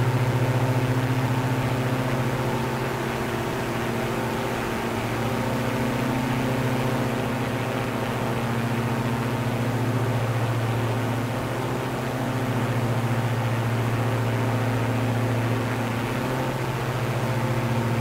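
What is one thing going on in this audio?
A propeller plane's engine drones steadily, rising and falling slightly in pitch.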